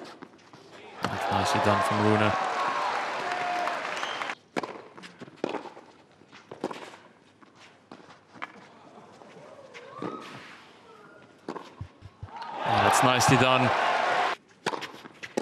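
A crowd cheers and applauds loudly in a large open arena.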